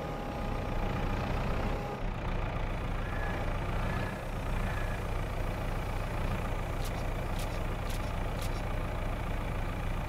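A diesel engine of a telehandler rumbles steadily.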